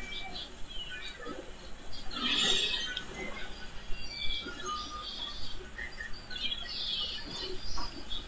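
Ink splashes loudly as game characters are splatted.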